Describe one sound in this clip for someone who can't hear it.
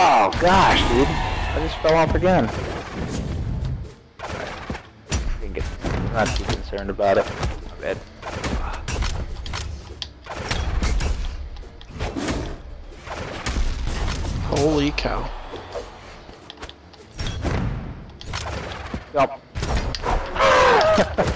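Quick punches and sword strikes land with sharp thuds and clangs.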